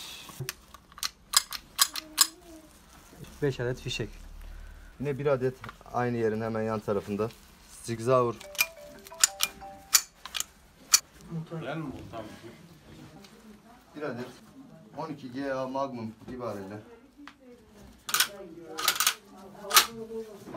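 Metal parts of a gun click and clack as hands handle it.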